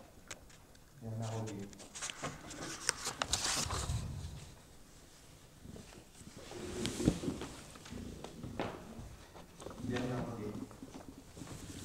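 A woman speaks quietly nearby.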